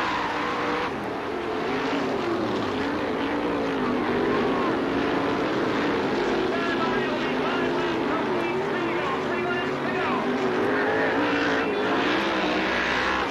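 Racing car engines roar and whine, rising and falling in pitch.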